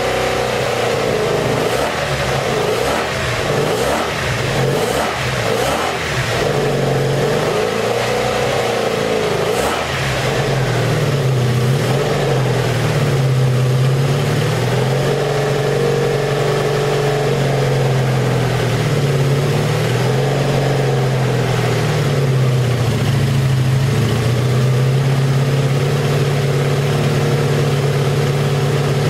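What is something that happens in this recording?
A motorcycle engine runs loudly, sputtering at first, then idles and revs up and down.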